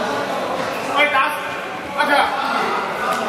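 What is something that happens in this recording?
Young men call out to each other in a large echoing hall.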